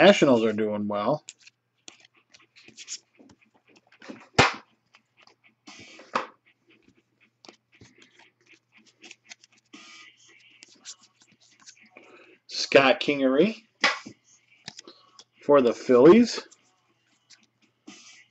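Stiff cards slide and click against each other as they are shuffled by hand.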